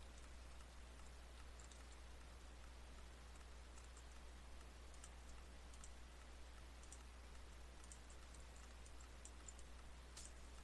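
Short, quiet clicks of blocks being mined sound now and then.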